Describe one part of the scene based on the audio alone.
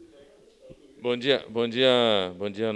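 A man speaks calmly into a handheld microphone, close up.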